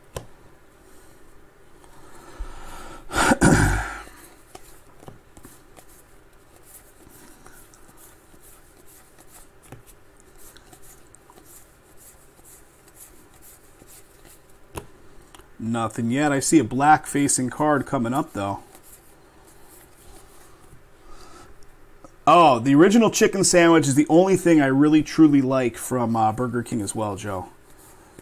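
Cards flick and rustle softly as they are sorted by hand.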